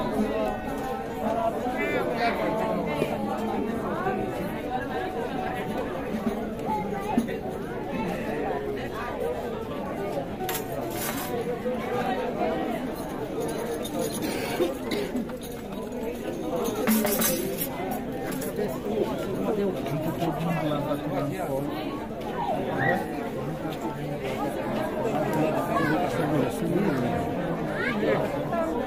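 A guitar strums a lively tune.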